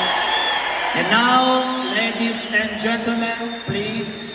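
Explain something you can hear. A man announces through a microphone over loudspeakers in a large echoing hall.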